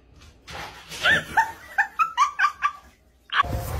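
A small dog yips and whines excitedly.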